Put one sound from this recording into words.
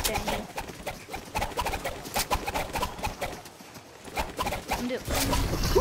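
A pickaxe whooshes through the air in quick swings.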